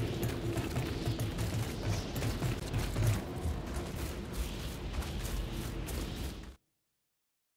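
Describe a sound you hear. Footsteps run quickly over metal grating and ground.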